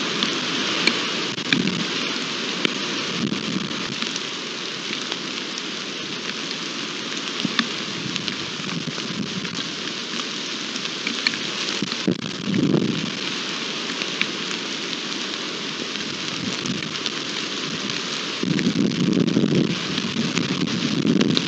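Wind gusts outdoors, buffeting in bursts.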